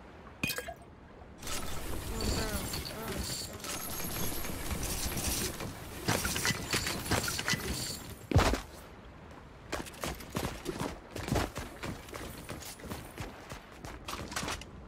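Quick footsteps patter as a game character runs.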